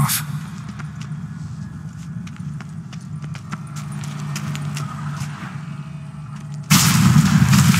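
Footsteps tap on a stone floor in an echoing space.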